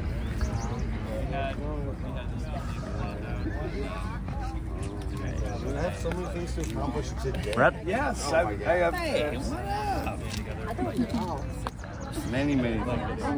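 A crowd of men and women chat nearby in the open air.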